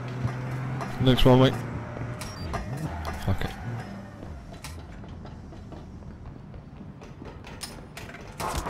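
Footsteps clang on a metal roof.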